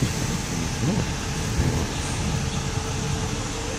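A bus engine rumbles as the bus pulls away.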